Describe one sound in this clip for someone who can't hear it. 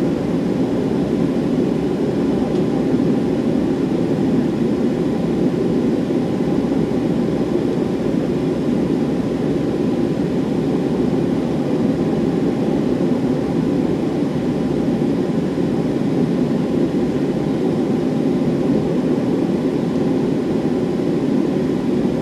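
Jet engines roar steadily inside an aircraft cabin as the plane taxis.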